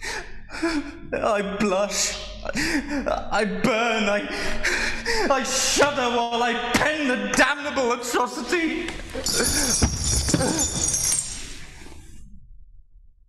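A man sings loudly and passionately.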